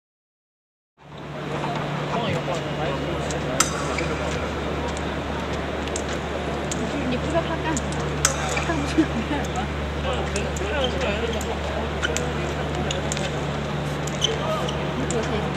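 Footsteps thud and squeak on a fencing strip.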